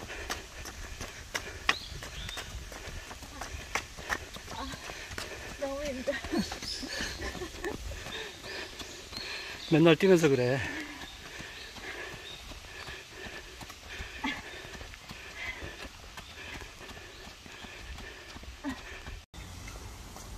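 A young woman's running footsteps patter on pavement close by.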